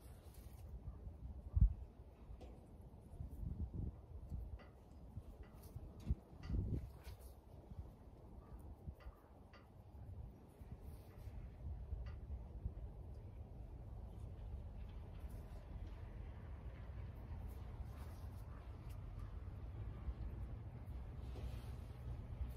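Fingers scatter seeds onto soil with soft patters.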